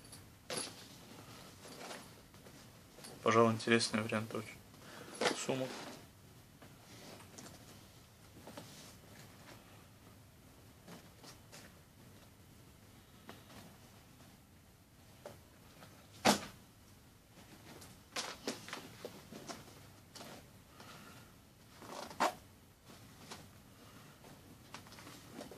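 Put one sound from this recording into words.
Leather bags rustle and creak as hands handle them.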